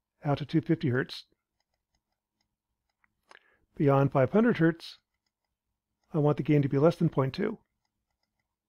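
A man speaks calmly and close to a microphone, in short phrases.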